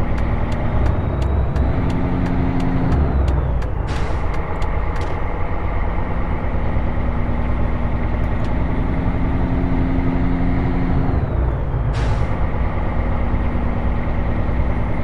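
A truck engine rumbles steadily, rising and falling in pitch.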